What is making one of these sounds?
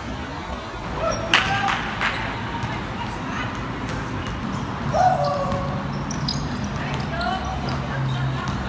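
Sneakers squeak sharply on a court.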